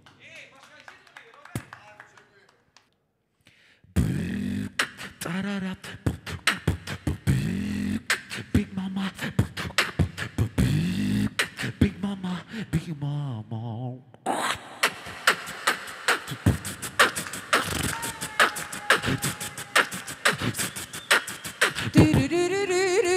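A small group of men and women clap their hands in rhythm.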